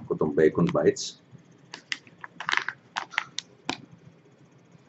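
A plastic packet crinkles in a man's hands.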